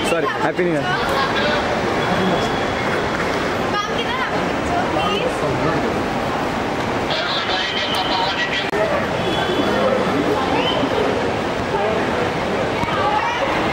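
Several men talk and call out close by in a busy crowd.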